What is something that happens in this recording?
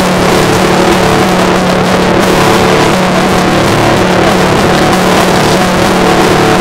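A man sings loudly and close by.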